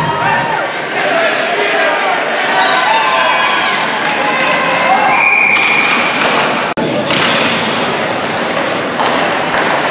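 Ice skates scrape and swish across the ice in a large echoing rink.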